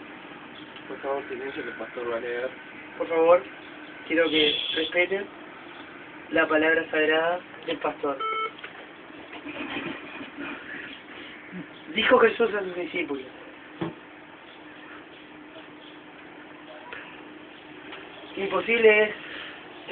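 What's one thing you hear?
A young man talks casually close to a microphone, in short bursts.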